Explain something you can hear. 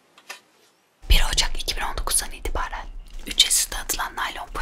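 A young woman speaks calmly and close into a microphone.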